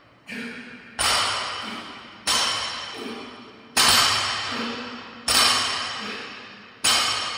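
Bumper plates rattle on a barbell during bent-over rows.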